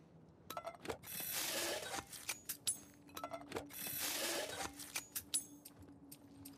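Cloth rustles and tears as something is crafted by hand.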